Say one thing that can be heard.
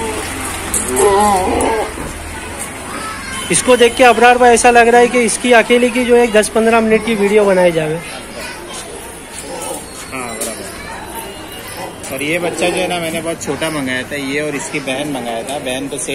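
A goat bleats loudly and repeatedly, with a wavering cry.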